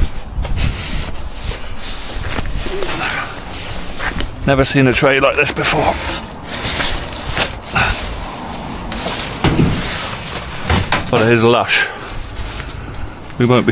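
A metal panel scrapes and clatters as it slides into a van.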